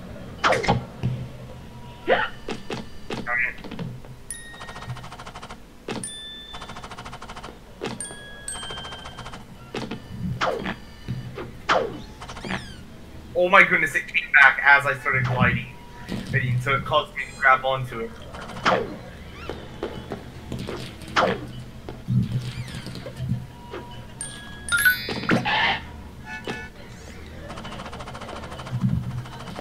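Short bouncy game sound effects chime and pop.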